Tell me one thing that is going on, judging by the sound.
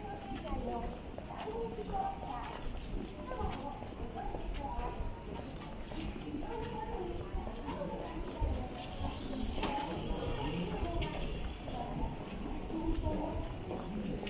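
A bicycle rolls along the street close by.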